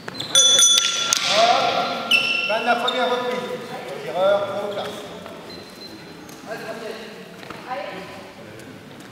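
Sports shoes squeak on a sports hall floor.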